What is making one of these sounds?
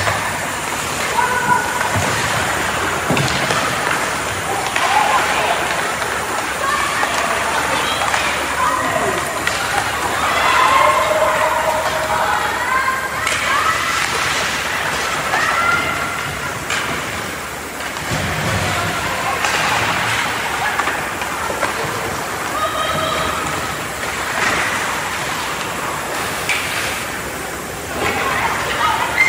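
Young players shout to each other across the ice.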